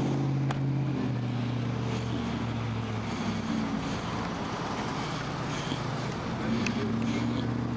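A car engine idles close by with a low, steady hum.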